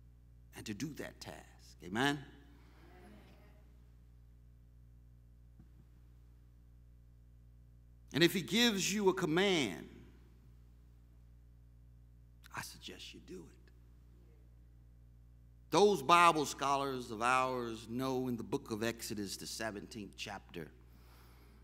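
A middle-aged man preaches through a microphone in bursts, with long pauses between phrases.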